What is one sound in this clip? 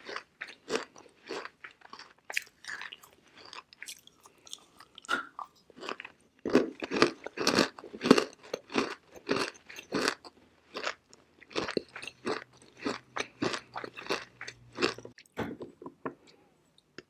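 A person crunches and chews brittle chalk close to a microphone.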